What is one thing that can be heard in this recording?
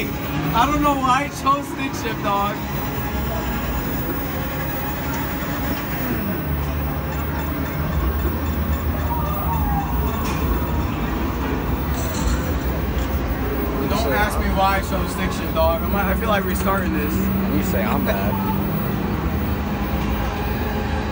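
An arcade racing game's engine roar drones through loudspeakers.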